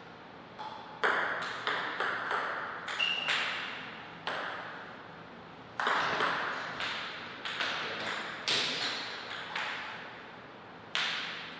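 A ping-pong ball clicks back and forth off a table and paddles, ringing in an echoing hall.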